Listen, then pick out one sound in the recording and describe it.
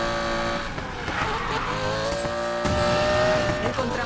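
Tyres screech as a car drifts through a bend.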